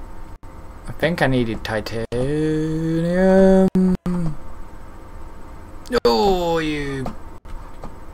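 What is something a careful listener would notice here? A young man makes long, wavering sounds with his voice close to a microphone.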